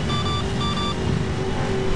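A racing car's engine roars at speed.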